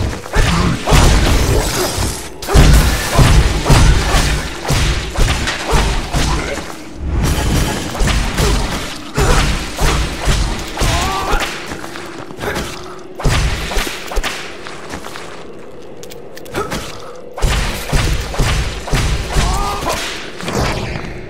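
Swords clash and slash in quick, heavy blows.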